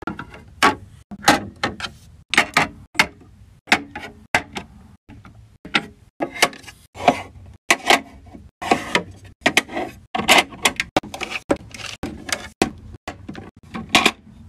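Glass dropper bottles clink as they are set on a plastic shelf.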